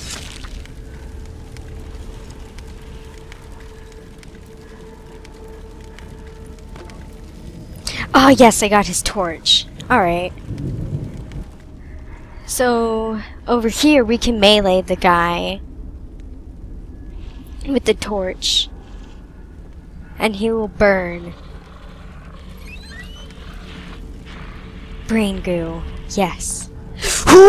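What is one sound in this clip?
A fire crackles nearby.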